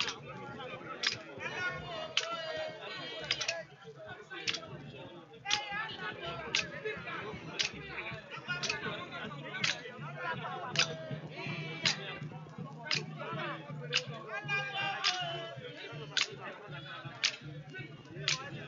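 A group of women sing together.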